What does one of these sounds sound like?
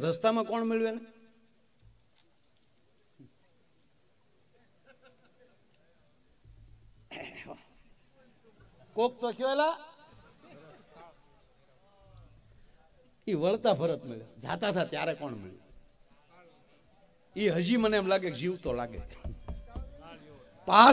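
A middle-aged man sings with feeling into a microphone, in bursts with pauses between them.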